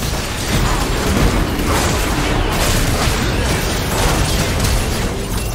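Magic blasts and crackling spell effects burst in quick succession.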